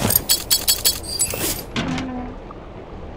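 A heavy metal safe door clicks open.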